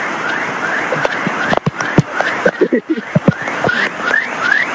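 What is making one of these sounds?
Debris knocks and clatters in the flowing water.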